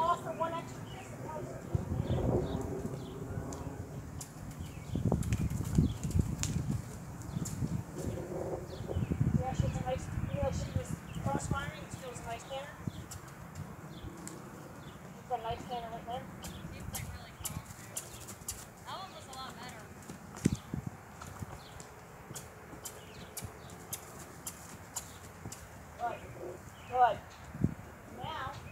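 A young woman calls out commands to a horse.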